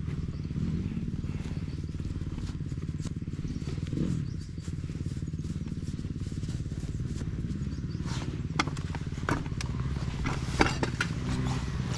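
Riding gloves rustle as they are pulled on.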